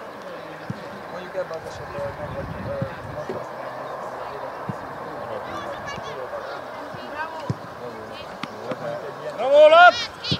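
Children shout loudly across an open field.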